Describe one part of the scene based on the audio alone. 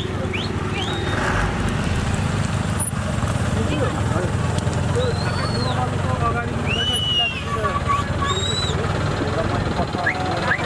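A motorcycle engine hums close by.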